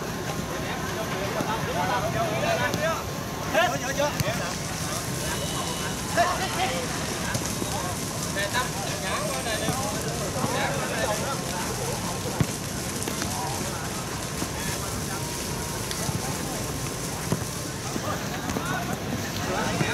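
A ball thuds as players kick it.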